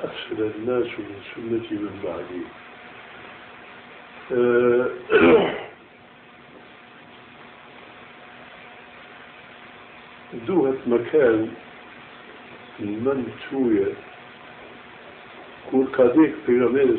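An elderly man speaks slowly and solemnly, in short phrases with long pauses.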